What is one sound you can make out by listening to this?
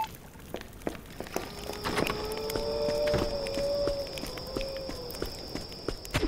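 Fire crackles and roars.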